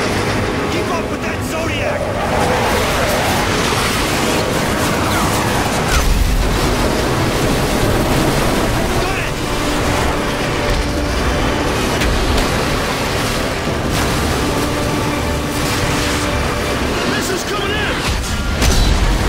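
A motorboat engine roars steadily.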